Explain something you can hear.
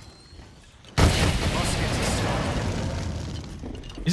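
A fire weapon whooshes and roars as it fires.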